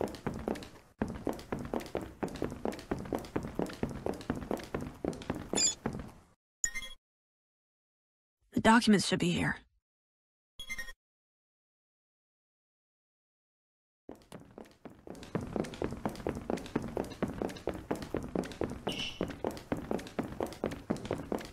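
Quick footsteps patter across a hard floor.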